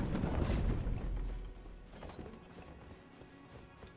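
Armoured footsteps clatter quickly on stone.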